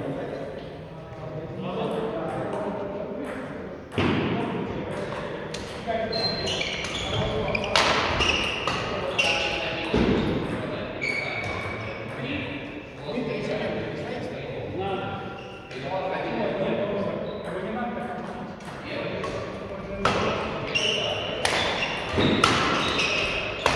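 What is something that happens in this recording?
Adult men and women talk and call out across an echoing hall.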